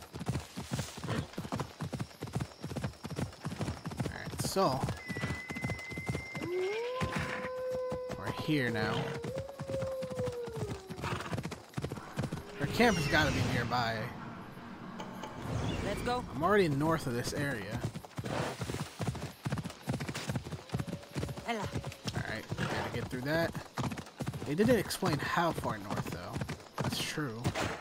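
Horse hooves gallop steadily over the ground.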